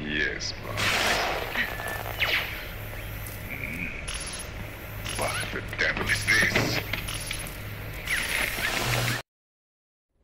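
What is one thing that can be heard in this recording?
A man speaks tensely over a crackling radio.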